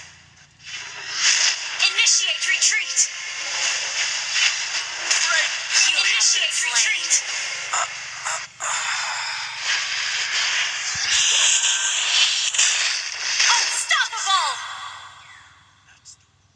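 Magic blasts and hits crackle and boom in a fast video game fight.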